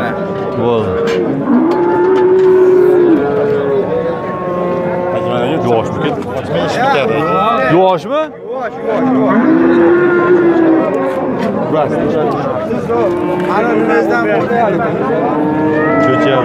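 Many men talk and call out all around, close by and farther off.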